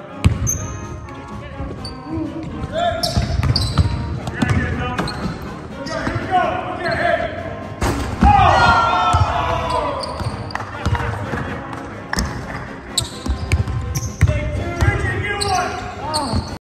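Basketballs bounce on a hard court in a large echoing gym.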